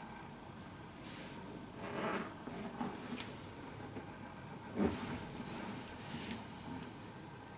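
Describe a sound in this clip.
Fabric rustles softly as hands move over a person lying down.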